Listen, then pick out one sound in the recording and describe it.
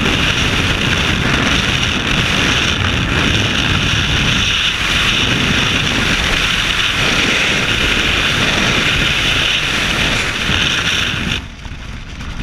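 Loud wind roars past during a freefall.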